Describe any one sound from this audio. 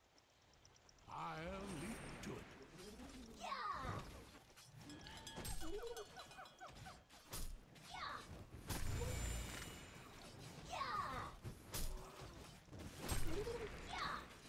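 Game sound effects of spells and hits crackle and burst.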